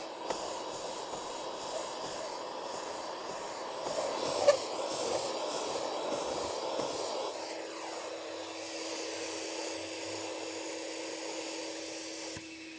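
A heat gun blows and whirs steadily.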